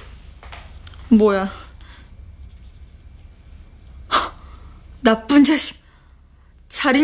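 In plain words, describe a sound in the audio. A young woman exclaims and speaks tensely nearby.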